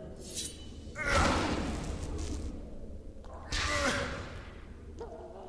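A blast of magic whooshes and roars.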